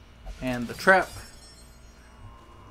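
A bright metallic chime rings out and fades.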